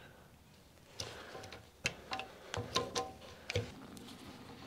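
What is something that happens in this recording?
Metal clamps click and rattle as they are tightened.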